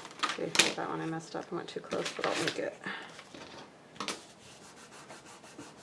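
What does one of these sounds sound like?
Paper rustles and crinkles as it is handled and folded.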